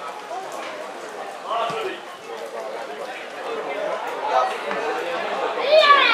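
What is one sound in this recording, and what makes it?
A crowd of spectators murmurs and calls out outdoors, growing louder toward the end.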